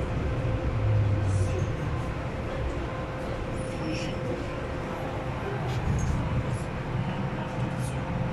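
A train's wheels clatter softly on the track.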